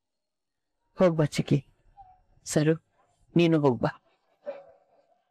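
A young woman speaks briefly in short, hesitant phrases.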